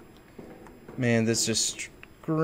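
A young man speaks briefly and loudly into a close microphone.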